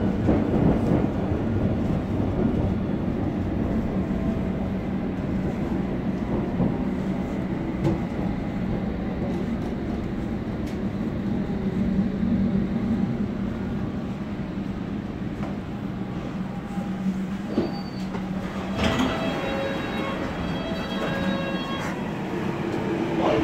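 A subway train rumbles along the track.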